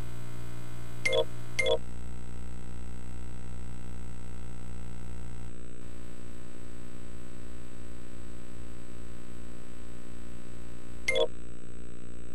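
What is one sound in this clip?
Short electronic menu beeps sound.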